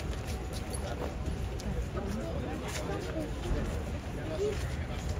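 A crowd of men and women chatter nearby outdoors.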